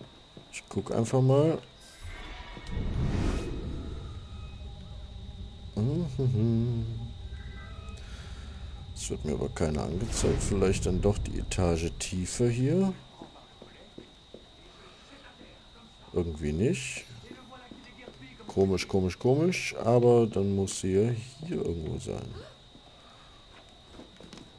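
Quick footsteps thud and patter across wooden floors and stairs.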